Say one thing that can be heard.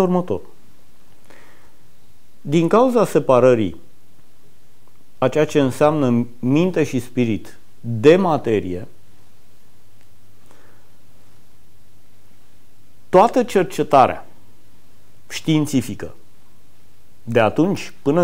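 A middle-aged man speaks calmly into a close microphone, pausing between phrases.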